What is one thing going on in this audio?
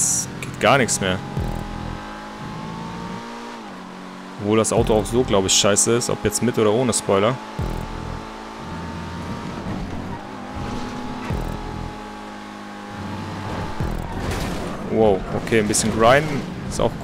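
A race car engine hums steadily at high speed.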